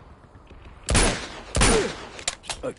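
A pistol fires shots in a video game.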